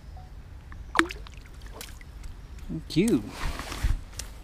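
A fish splashes as it is let back into the water.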